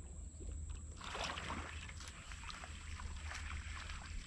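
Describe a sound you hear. Water splashes around a man wading.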